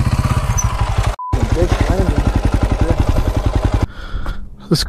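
A dirt bike engine runs close by.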